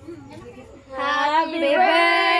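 A young woman sings loudly close by.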